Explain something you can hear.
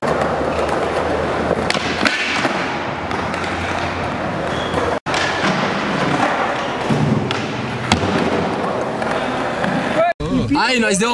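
Skateboard wheels roll and rumble on concrete.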